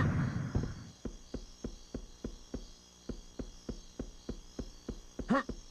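Footsteps thud steadily.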